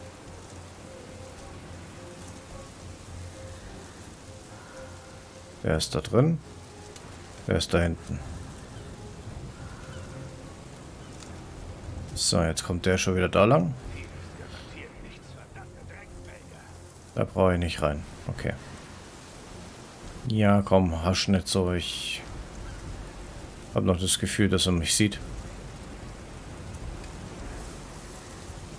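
Tall grass rustles softly as people creep through it.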